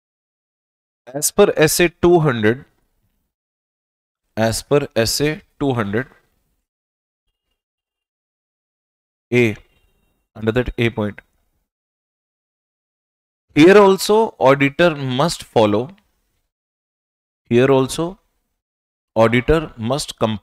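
A man lectures calmly into a close microphone, speaking in short bursts with pauses.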